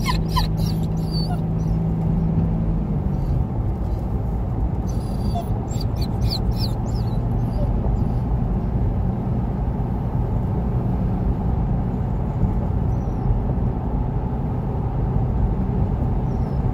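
Tyres rumble steadily on asphalt.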